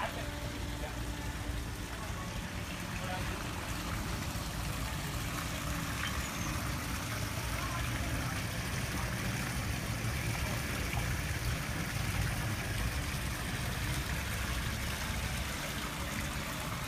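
Water splashes and trickles steadily into a small pond.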